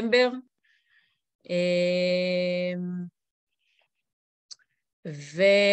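A woman sings long held notes, heard through an online call.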